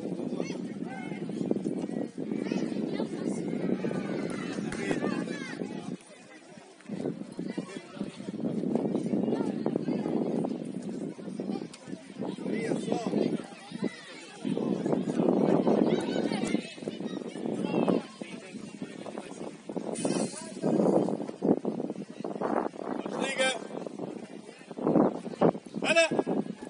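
Young players shout and call to each other across an open pitch outdoors.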